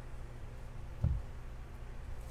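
Cards slide and tap against each other.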